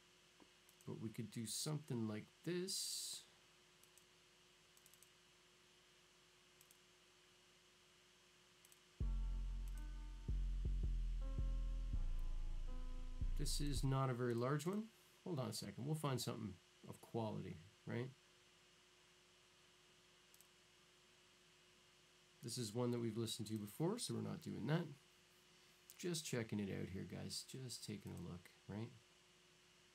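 A man talks casually and close to a microphone, in short bursts with pauses.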